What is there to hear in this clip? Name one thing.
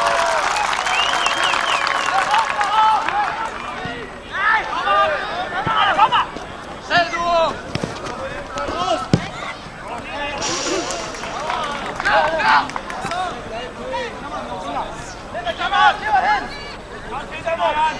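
A large crowd murmurs and calls out outdoors.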